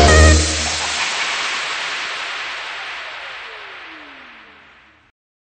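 Electronic dance music plays and fades away.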